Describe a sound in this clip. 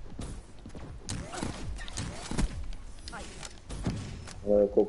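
Gunshots fire in short, quick bursts.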